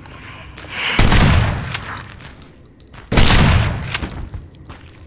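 A pistol fires two loud gunshots that echo and boom.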